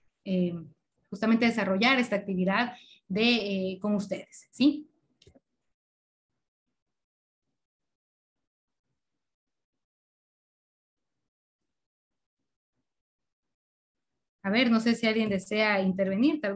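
A woman speaks with animation through an online call, with pauses.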